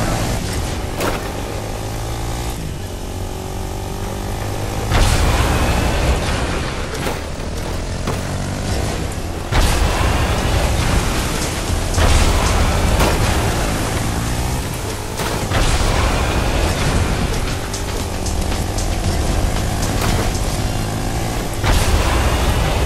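Game gunshots and impacts crack now and then.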